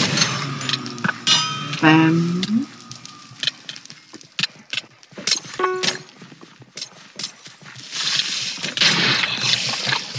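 Sword blows land with short sharp thuds.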